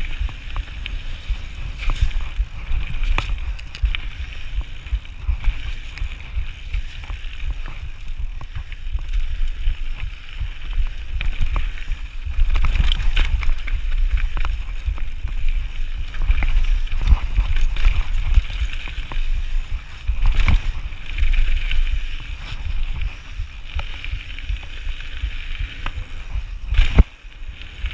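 Bicycle tyres crunch and rattle over loose gravel.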